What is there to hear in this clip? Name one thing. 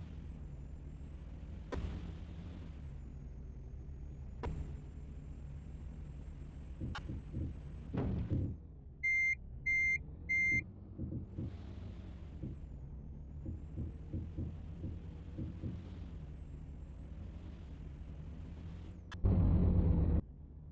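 A diesel semi truck engine rumbles as the truck drives.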